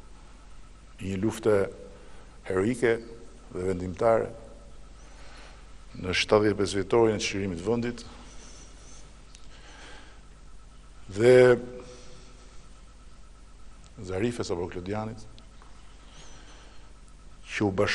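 A middle-aged man speaks slowly and firmly into a microphone, pausing often.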